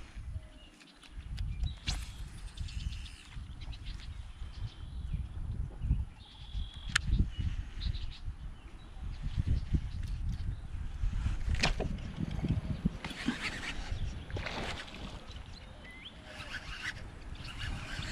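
Small waves lap against a kayak's hull.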